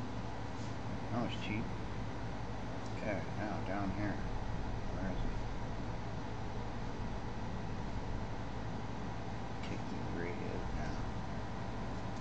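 A man talks quietly and calmly into a microphone.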